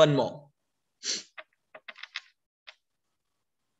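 Stiff cards click and rustle as hands handle them.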